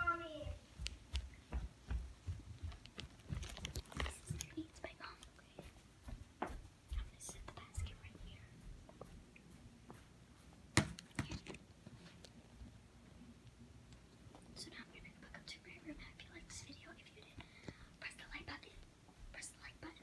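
A young girl talks close to the microphone.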